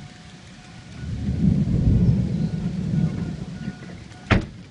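Wind gusts roar loudly outdoors.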